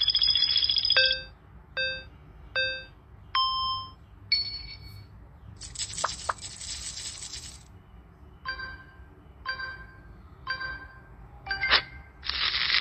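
A bright chime beeps several times in a countdown.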